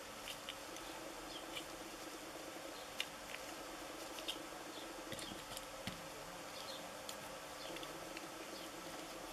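Rubber gloves rustle and squeak against plastic.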